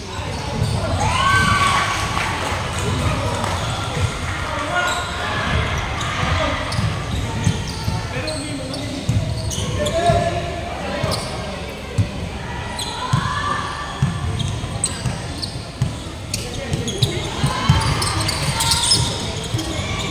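Basketball shoes squeak sharply on a hardwood floor in a large echoing gym.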